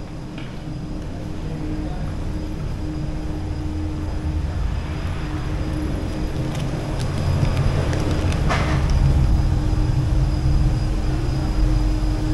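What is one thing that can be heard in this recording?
Footsteps go down concrete stairs in an echoing stairwell.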